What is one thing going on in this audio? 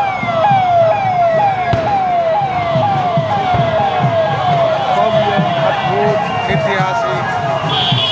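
A vehicle siren whoops in a fast, repeating falling pattern nearby.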